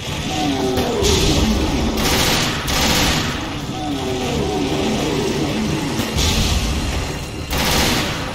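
A machine gun fires in loud rattling bursts.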